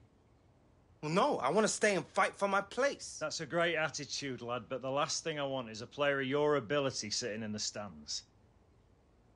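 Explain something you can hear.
A man speaks calmly at length.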